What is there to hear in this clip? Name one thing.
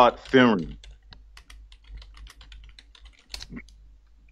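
Computer keys click quickly as someone types.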